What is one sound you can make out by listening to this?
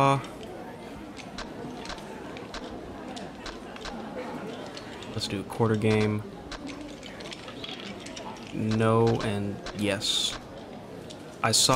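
Short electronic blips sound as a menu selection changes.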